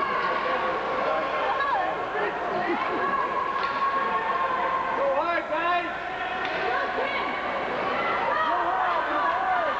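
Ice skates scrape across ice.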